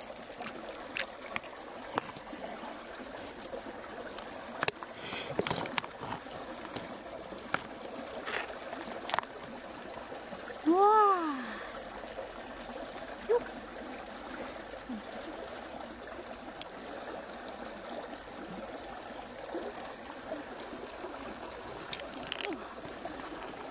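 Fingers squelch and scrape on the soft flesh of an open shellfish.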